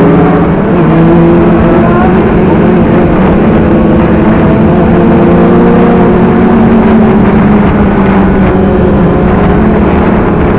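A motorcycle engine roars steadily up close while riding fast.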